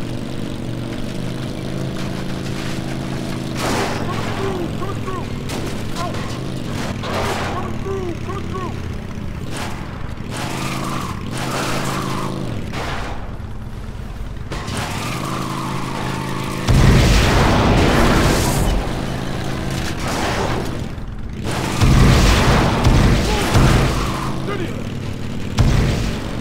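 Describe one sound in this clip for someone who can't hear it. A quad bike engine drones and revs steadily.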